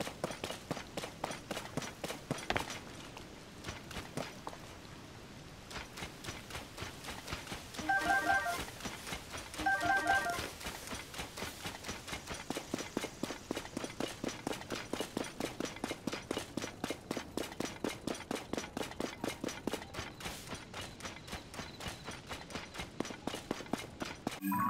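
Footsteps run quickly over grass and stone.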